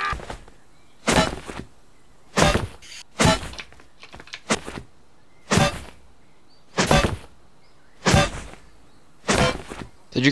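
A pickaxe strikes a soft bag again and again at a steady pace.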